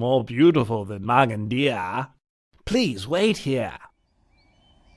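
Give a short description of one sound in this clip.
A man speaks calmly and slowly.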